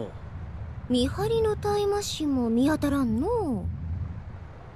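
A young woman answers calmly, close up.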